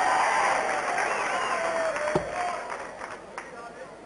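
A crowd claps and cheers in a large hall.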